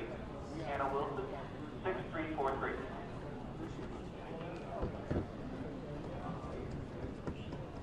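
A man speaks calmly into microphones in a large echoing hall.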